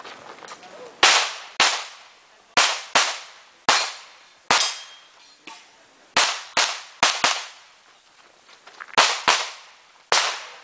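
Pistol shots crack in quick bursts, with a short echo.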